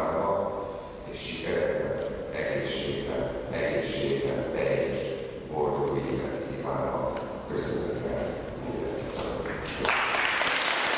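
An elderly man speaks steadily into a microphone, heard over a loudspeaker in a large hall.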